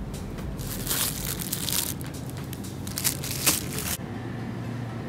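Plastic bags crinkle and rustle under a hand.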